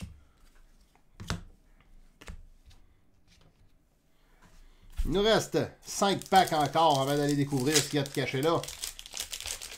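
Cardboard packs rustle and tap as they are handled.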